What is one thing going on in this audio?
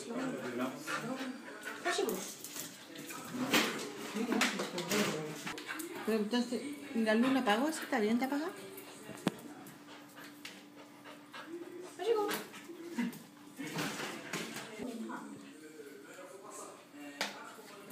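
A young woman talks playfully to a dog close by.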